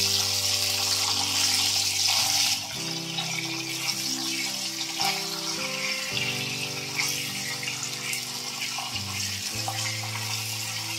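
A spatula scrapes and taps against a metal pan.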